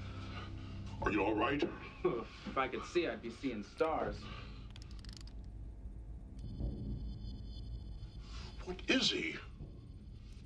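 A man speaks urgently nearby.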